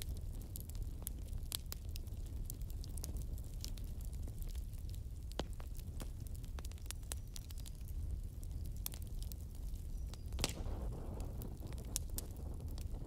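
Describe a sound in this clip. Flames roar softly with a low rumble.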